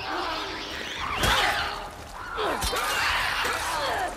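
A creature shrieks and snarls up close.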